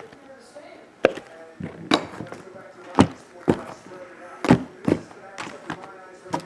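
Cardboard boxes are set down with knocks.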